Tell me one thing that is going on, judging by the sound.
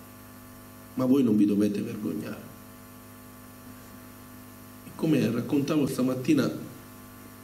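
A middle-aged man speaks calmly into a microphone in a hall, heard through loudspeakers.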